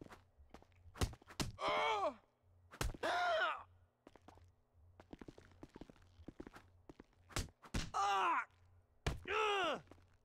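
Punches land with hard, sharp thuds.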